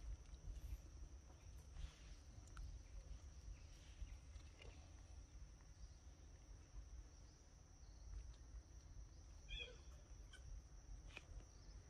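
A baby monkey sucks and slurps at a milk bottle.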